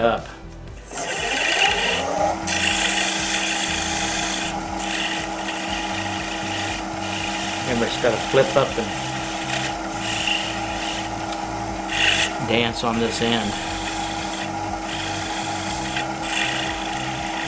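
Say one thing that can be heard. A lathe motor spins up and then hums steadily.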